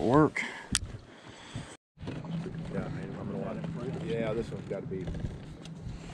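Small waves lap against a boat's hull.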